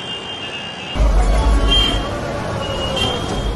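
A motor rickshaw engine rattles while driving.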